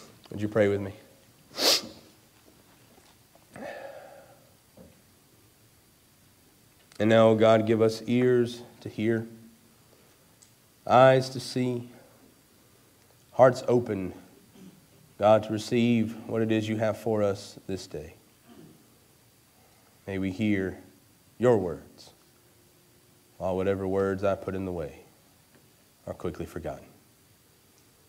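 A young man speaks calmly and slowly into a microphone, in phrases with pauses.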